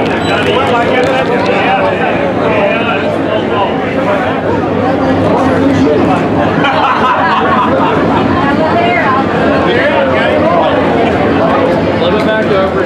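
Race car engines roar around the track.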